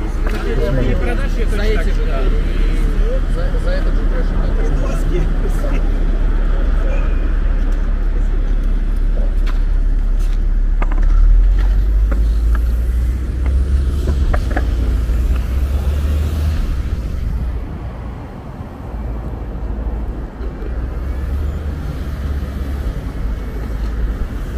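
Traffic hums along a nearby road.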